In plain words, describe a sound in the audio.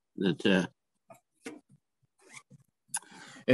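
Hands knock and shift a heavy plastic case on a table.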